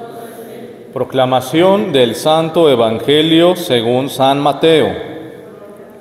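A young man chants through a microphone in an echoing room.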